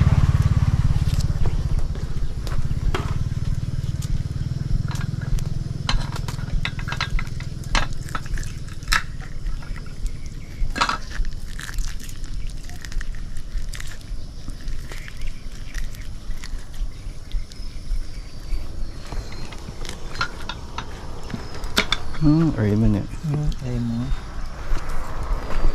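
Wooden sticks click and tap together close by.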